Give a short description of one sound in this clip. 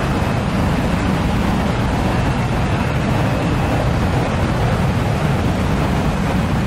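A jet engine roars steadily as a plane approaches.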